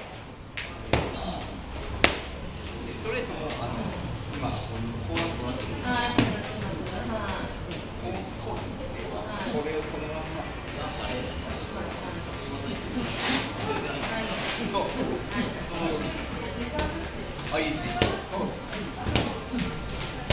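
Sneakers squeak and shuffle on a padded floor.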